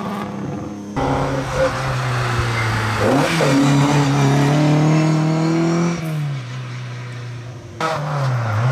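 A rally car engine revs hard and shifts gears through a bend.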